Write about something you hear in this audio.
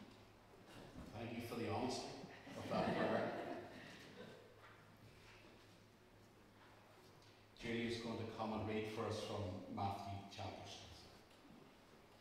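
A man speaks calmly in an echoing room.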